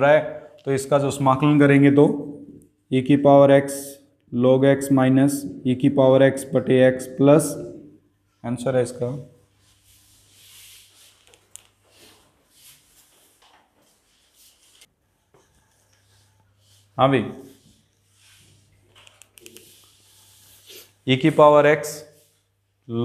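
A man speaks calmly and clearly, close by, as if explaining.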